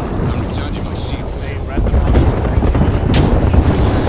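A shield battery charges with a rising hum.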